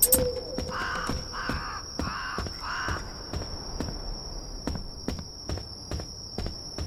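Footsteps tread at a steady pace across a floor.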